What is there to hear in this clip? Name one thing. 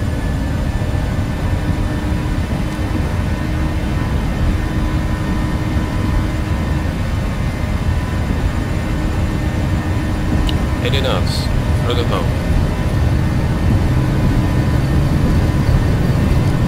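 Jet engines roar steadily, growing slightly louder.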